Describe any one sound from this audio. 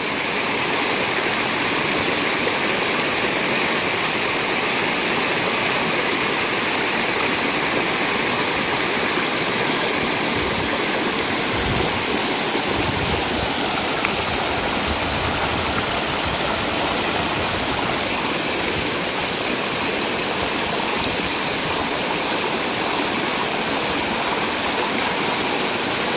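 Water rushes steadily over rocks close by.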